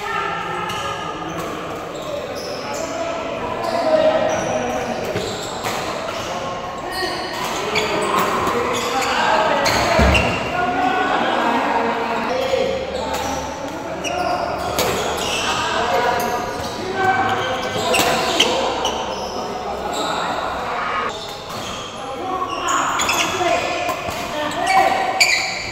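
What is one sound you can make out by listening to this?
Men chatter in the background of a large echoing hall.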